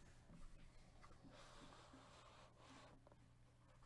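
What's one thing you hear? A cardboard box is opened with scraping and rustling.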